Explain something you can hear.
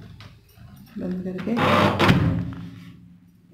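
A microwave door slams shut.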